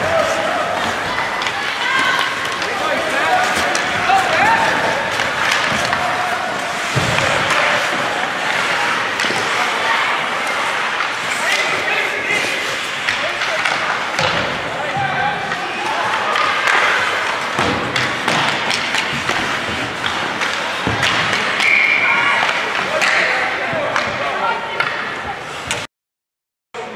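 A crowd of spectators murmurs and calls out in a large echoing rink.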